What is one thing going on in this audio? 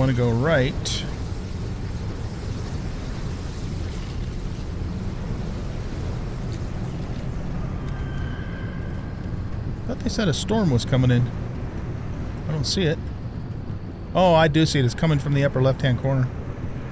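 An older man talks through a microphone.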